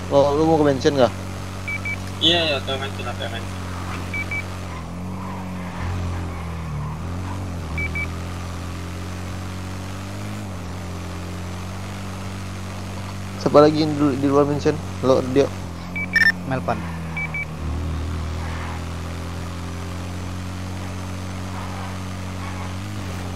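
A quad bike engine hums steadily as it drives along.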